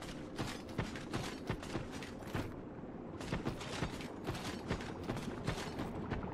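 Armoured footsteps thud on a hard floor.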